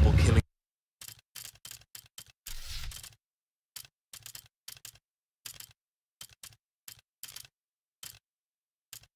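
Short menu clicks sound one after another.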